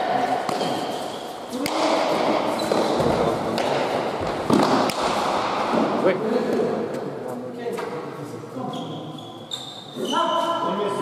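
A ball smacks against hard walls and hands, echoing in a large hall.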